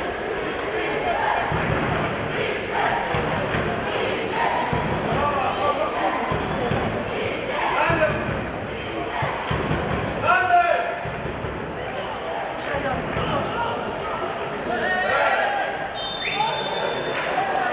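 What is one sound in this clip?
A crowd of spectators chatters and calls out in an open stadium.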